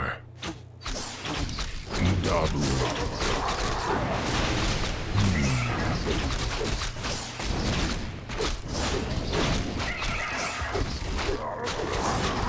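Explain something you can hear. Weapons clash and strike in a busy battle.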